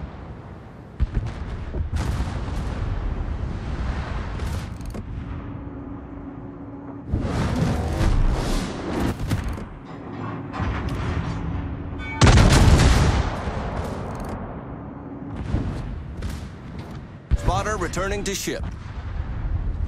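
Heavy naval guns fire with deep booms.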